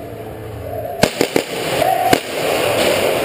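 A paintball marker fires a few sharp shots.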